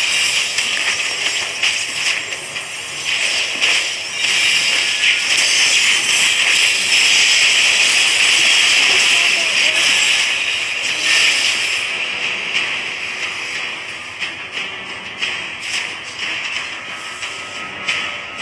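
Magic spells crackle and burst in a fast video game battle.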